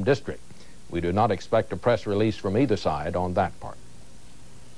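A man speaks calmly and clearly into a microphone, close up.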